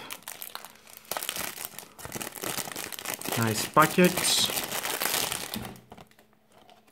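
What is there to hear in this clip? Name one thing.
Plastic wrap crinkles and rustles close by.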